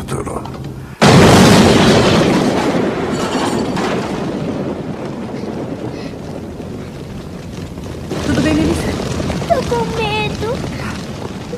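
A fire roars loudly.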